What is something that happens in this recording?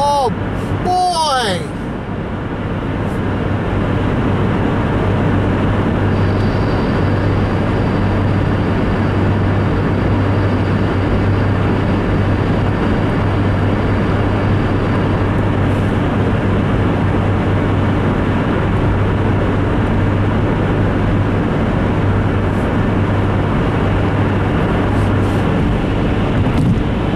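A car's engine hums steadily inside the cabin.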